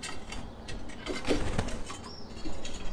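A pigeon's wings flap loudly close by as it flies past.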